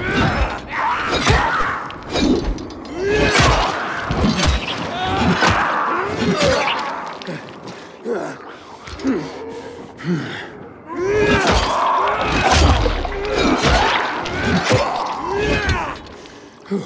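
Monstrous creatures snarl and growl close by.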